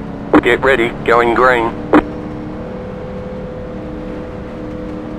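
A race car engine hums steadily at low speed.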